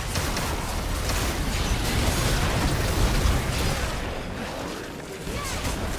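Spell blasts and explosions crackle and boom in a fast video game battle.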